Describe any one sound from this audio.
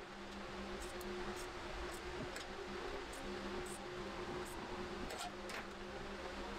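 Metal parts click and tap lightly.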